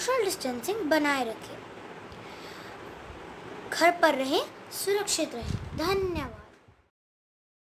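A young girl speaks close by, calmly, in short phrases.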